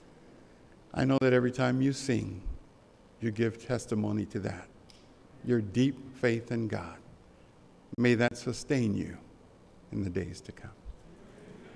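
A man speaks calmly into a microphone in a large, echoing hall.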